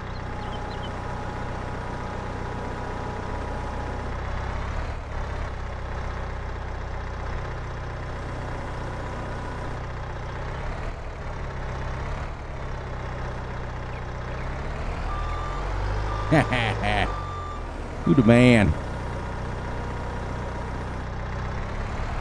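A diesel engine hums steadily.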